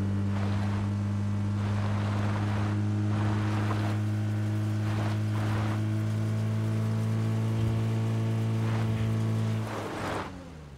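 A vehicle engine hums steadily as it drives.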